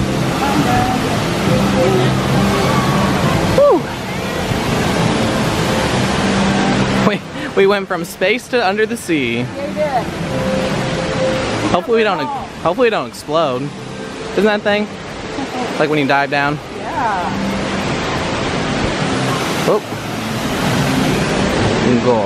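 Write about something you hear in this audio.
A waterfall splashes and rushes nearby.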